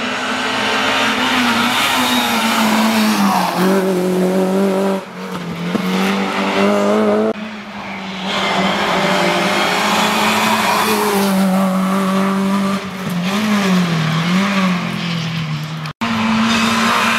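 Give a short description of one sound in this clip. A rally car engine roars and revs hard, rising and falling with gear changes.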